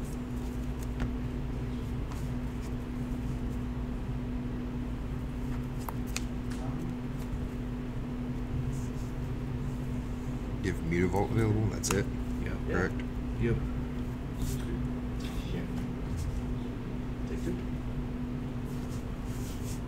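Playing cards slide and tap softly on a cloth mat.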